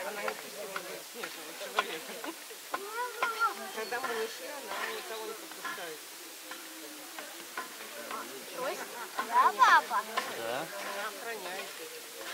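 A polar bear cub gnaws and chews on food.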